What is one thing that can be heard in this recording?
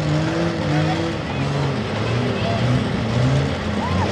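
A tractor engine rumbles nearby.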